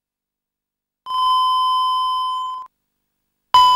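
A steady high test tone sounds, then cuts off.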